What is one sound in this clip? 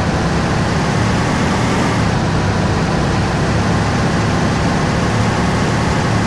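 A truck engine rumbles steadily as the truck drives along.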